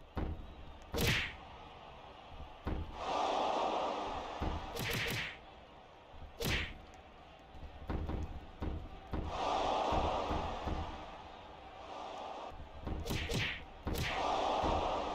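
Heavy thuds of bodies slamming onto a wrestling mat.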